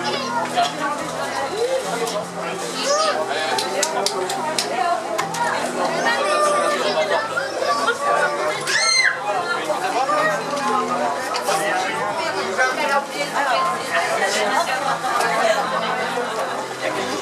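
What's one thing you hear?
A crowd of men and women chatter and talk at once nearby.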